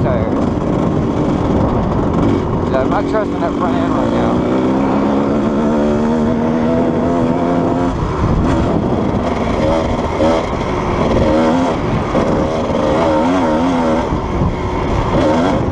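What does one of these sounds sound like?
A motorcycle engine revs up and down nearby.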